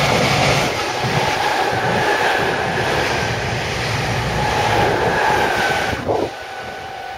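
A train rushes past close by with a loud, rumbling roar.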